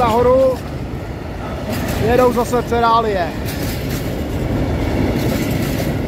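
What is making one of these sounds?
A freight train rumbles and clatters past close by on the rails.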